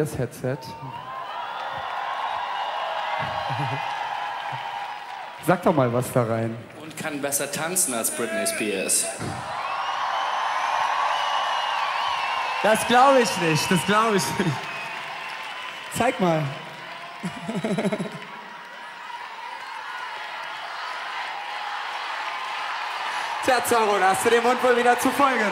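A large outdoor crowd cheers and whistles.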